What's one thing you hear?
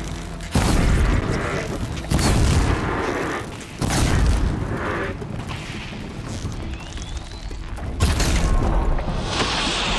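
Explosions boom and crackle in quick bursts.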